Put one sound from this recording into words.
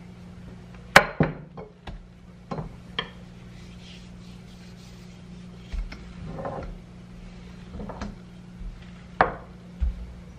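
A rolling pin knocks against a hard countertop now and then.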